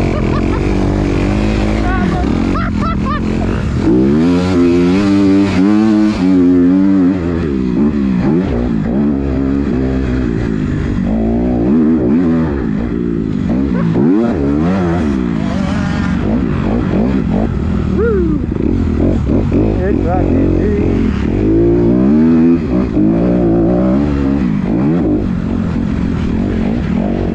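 A dirt bike engine roars loudly up close, revving up and down as it shifts gears.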